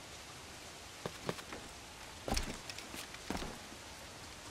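Footsteps thud on wooden rigging.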